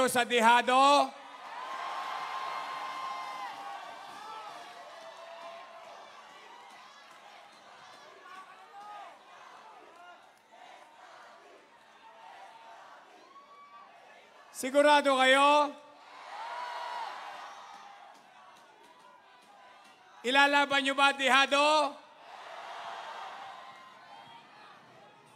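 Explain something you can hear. A large crowd cheers and roars in response.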